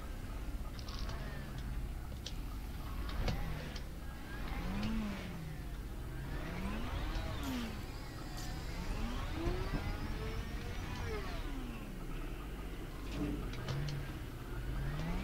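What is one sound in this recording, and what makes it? A vehicle's motor whines, rising and falling in pitch as it drives.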